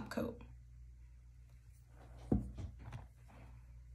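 A small plastic bottle is set down with a light knock.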